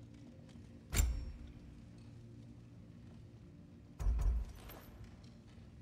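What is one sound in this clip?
A game menu makes short sharp selection sounds.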